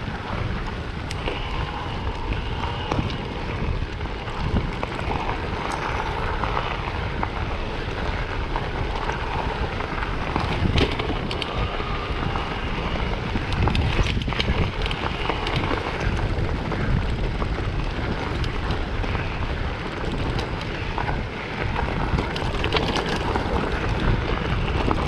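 Bicycle tyres crunch steadily over a gravel path.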